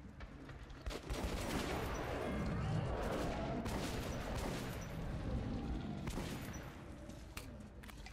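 Creatures snarl and growl close by.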